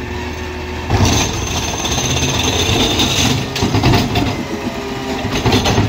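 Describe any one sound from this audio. Trash clatters and thumps as a bin is emptied into a truck.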